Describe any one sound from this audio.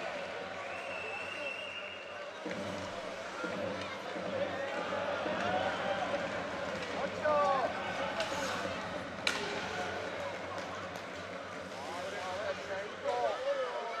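A crowd in a large echoing arena cheers and chatters.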